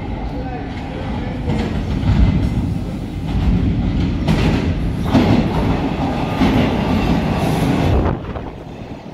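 A subway train rumbles loudly into an echoing underground station and slows to a stop.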